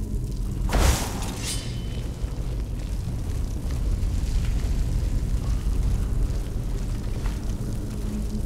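Flames crackle and hiss softly.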